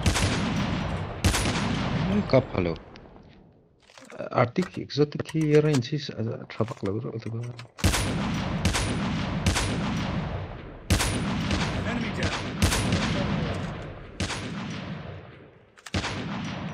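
Sniper rifle shots fire one after another, each ringing out with a long echoing tail.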